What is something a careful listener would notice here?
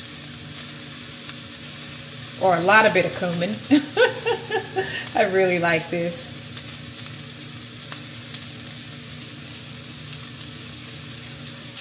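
A shaker rattles as seasoning is shaken over food.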